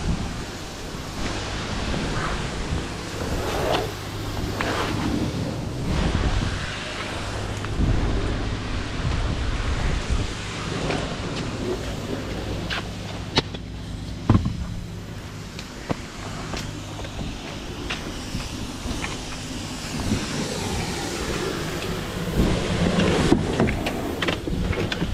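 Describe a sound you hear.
Footsteps thud and scuff on paving stones.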